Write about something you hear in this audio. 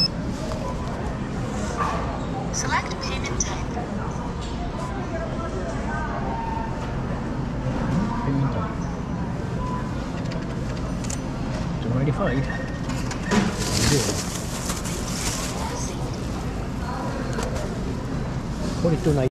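A busy indoor hall hums with a steady murmur of background noise.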